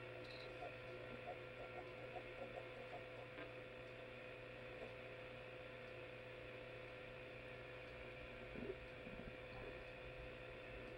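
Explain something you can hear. A small television plays a tinny, muffled soundtrack through its speaker.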